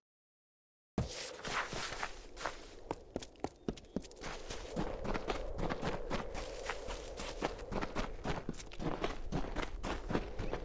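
Footsteps run quickly over stone and grass.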